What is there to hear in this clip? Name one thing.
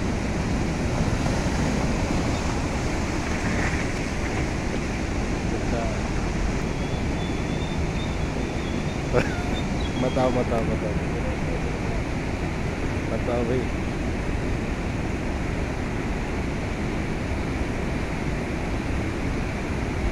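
Floodwater rushes and roars loudly over rocks.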